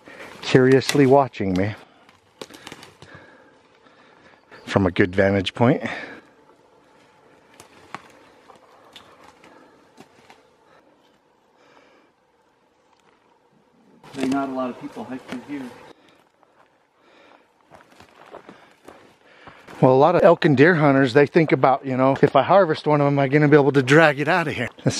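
Footsteps crunch on brush and dry twigs.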